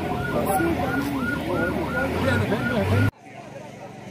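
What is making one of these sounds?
Several men talk loudly and urgently close by.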